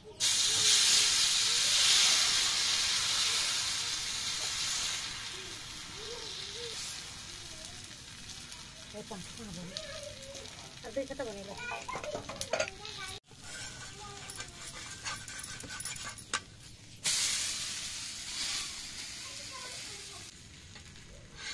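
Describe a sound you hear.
A metal spoon scrapes against a pan.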